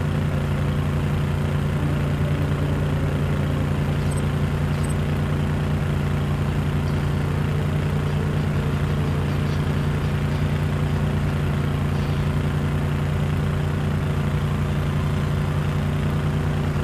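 A vehicle engine rumbles steadily as it drives over rough ground.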